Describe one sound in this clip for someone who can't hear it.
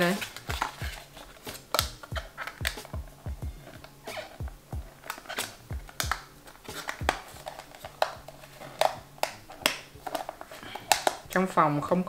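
Plastic clicks and taps.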